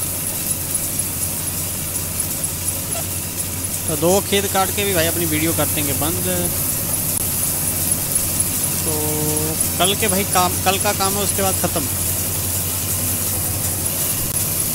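A combine harvester engine hums steadily.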